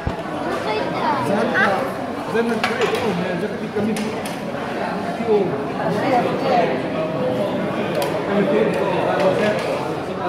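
Dishes and cups clink on a table.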